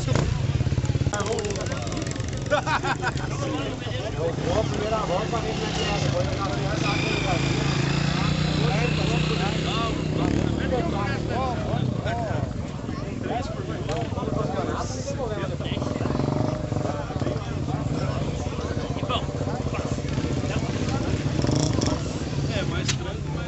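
Motorcycle engines idle steadily nearby.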